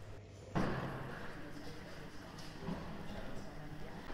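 People murmur in a large echoing hall.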